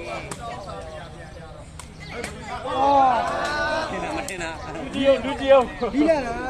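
Spectators shout and cheer loudly outdoors.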